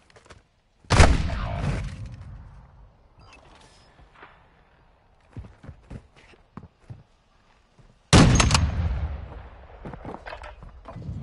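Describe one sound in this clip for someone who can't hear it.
Gunshots ring out in loud, echoing bursts.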